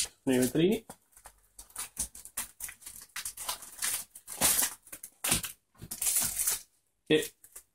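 A plastic bag rustles and crinkles as hands handle it.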